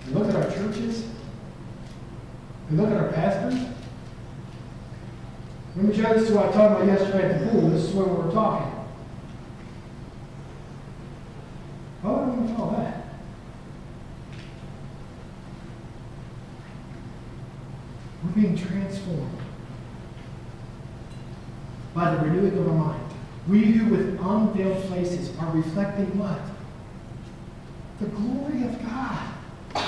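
A man speaks with animation through a microphone in a large echoing hall, pausing often.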